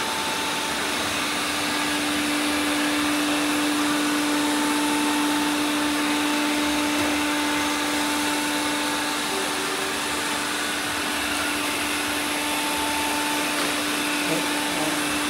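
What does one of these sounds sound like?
Several robot vacuum cleaners hum and whir steadily as they move across the floor.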